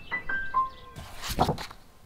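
Paper pages turn with a rustle.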